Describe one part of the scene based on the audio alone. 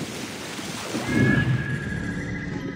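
A body plunges into water with a loud splash.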